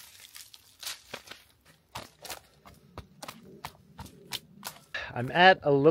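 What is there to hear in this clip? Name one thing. Footsteps crunch on dry twigs.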